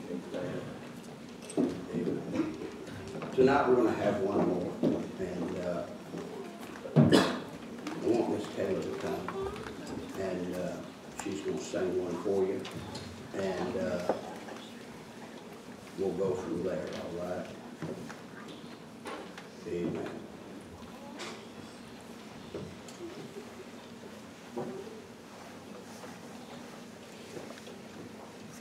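A man speaks calmly through a microphone and loudspeakers in an echoing hall.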